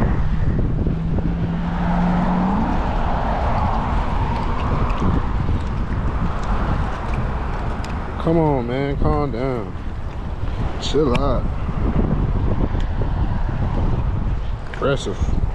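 Small waves lap and splash against a sea wall.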